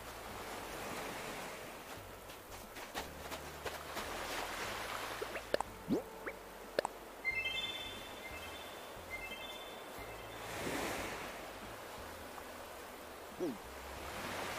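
Gentle ocean waves wash onto a beach.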